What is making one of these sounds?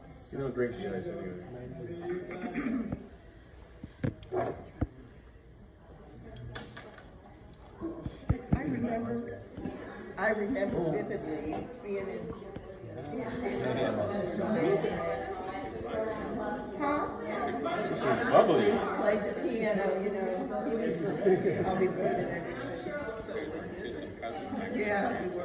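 Several men and women chat and laugh nearby in a lively group.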